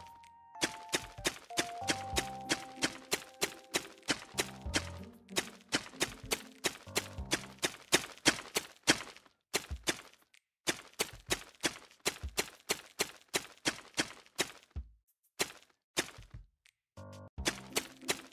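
A pickaxe chips at stone in quick, steady strikes.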